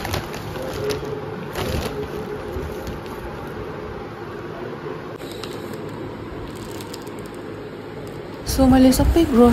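Plastic packets rustle and crinkle as they are handled.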